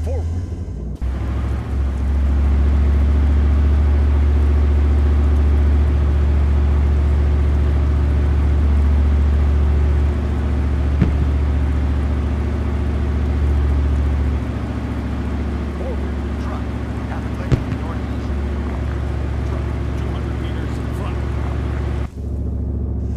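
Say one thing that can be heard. A tank engine rumbles as the tank drives.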